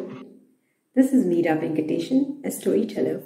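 A young woman speaks steadily and clearly into a close microphone.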